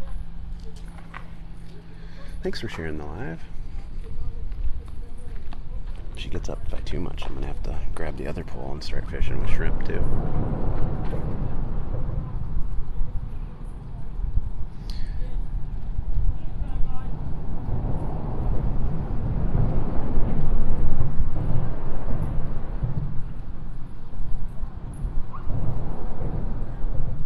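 Wind blusters steadily outdoors, rumbling low.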